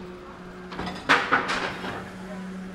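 Metal clatters loudly from a garbage truck.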